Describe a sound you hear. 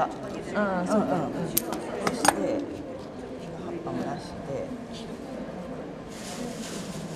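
An older woman talks quietly close by.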